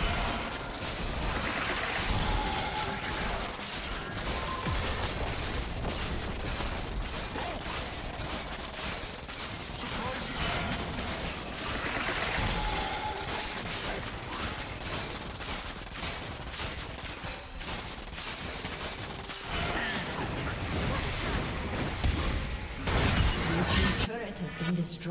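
Game spells crackle and clash in a fight.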